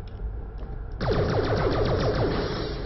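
Gunfire crackles and blasts in rapid bursts.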